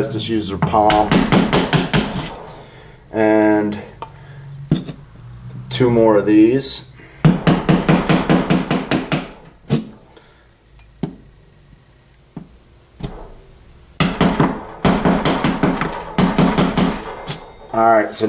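A hammer taps a chisel against a wall.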